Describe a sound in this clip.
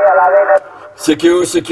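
A middle-aged man speaks close into a microphone.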